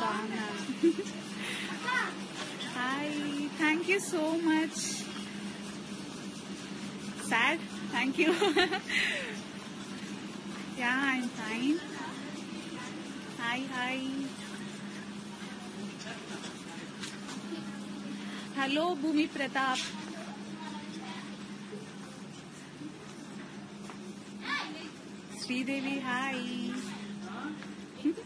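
A young woman speaks cheerfully and close by, in short bursts with pauses.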